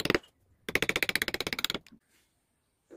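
A chisel scrapes rapidly into wood.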